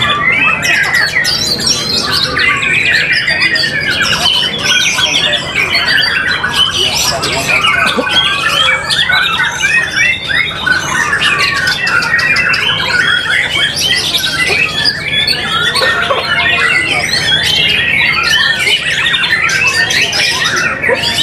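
A caged songbird sings loud, rapid, chirping phrases nonstop.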